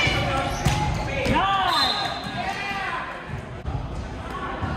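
A volleyball thumps off a player's hands and arms.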